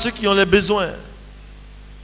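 A man speaks briefly into a microphone, heard through a loudspeaker.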